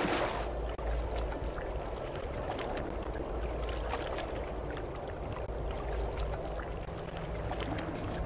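A character swims through water with soft splashing.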